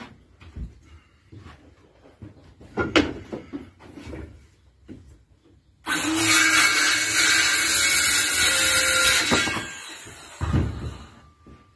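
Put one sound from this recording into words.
Tools and wood knock and clatter on a hard floor.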